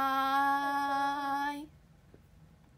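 A young woman calls out in a long, drawn-out voice close by.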